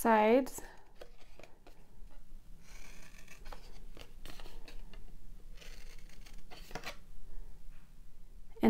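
Scissors snip through thin cardboard in short cuts.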